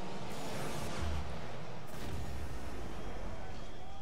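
A goal explosion booms with a deep rumble.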